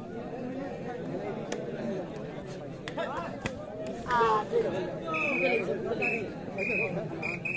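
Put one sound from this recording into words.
Young men shout and chant during play.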